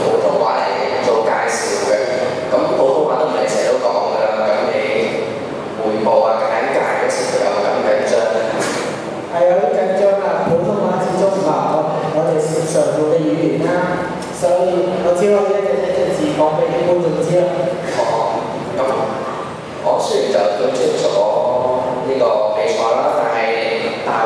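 A young man speaks through a microphone and loudspeakers in a large echoing hall.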